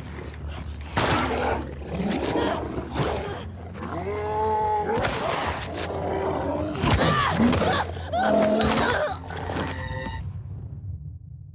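Heavy blows thud during a struggle.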